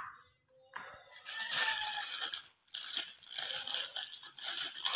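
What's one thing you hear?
A plastic bag crinkles loudly.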